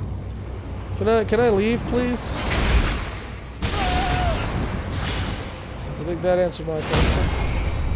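A large creature roars and snarls.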